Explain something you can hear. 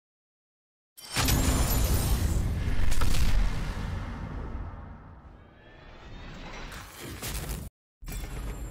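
Booming game music swells with whooshing effects.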